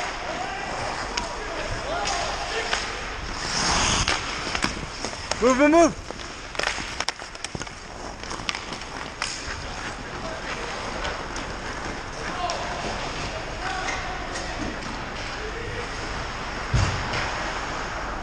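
Skate blades scrape and hiss across ice in a large echoing rink.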